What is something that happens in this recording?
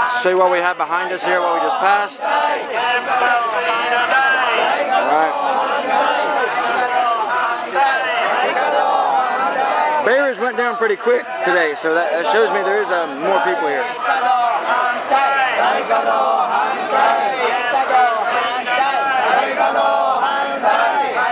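A crowd of men and women chants and talks loudly outdoors.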